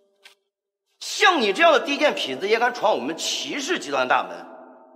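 A middle-aged man speaks angrily and scornfully, close by.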